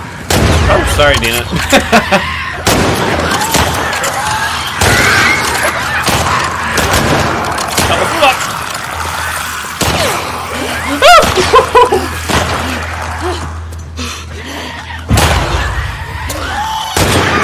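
A young man talks and laughs with animation, close to a microphone.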